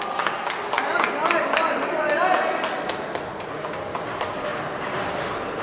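Ping-pong balls click sharply against paddles and tables in a large echoing hall.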